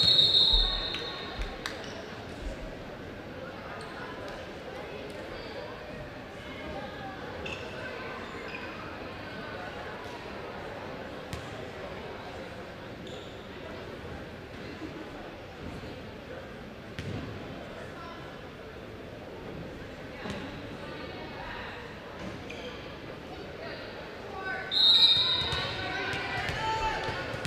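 A crowd murmurs and chatters in the stands throughout.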